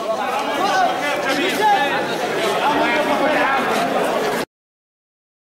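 Men clap their hands in rhythm.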